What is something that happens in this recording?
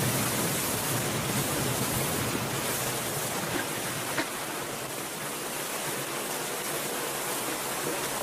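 Water rushes and laps steadily.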